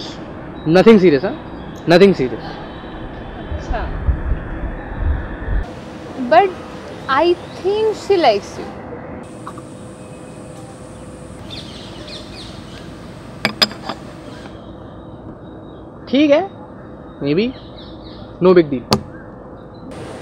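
A young man talks casually close by.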